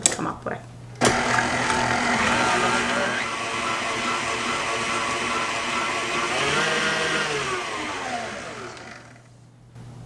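An electric stand mixer whirs steadily, then winds down.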